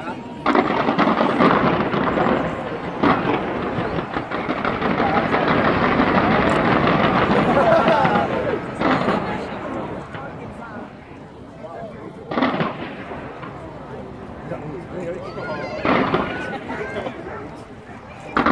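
Fireworks explode with booming bursts at a distance.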